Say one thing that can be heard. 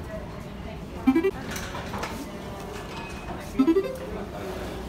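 An electronic reader beeps twice.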